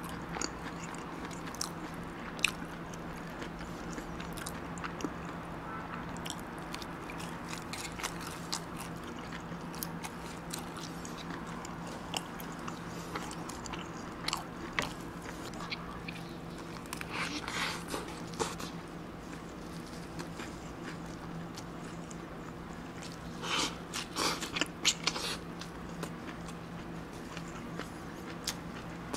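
A young man chews food with wet, crunchy mouth sounds close to a microphone.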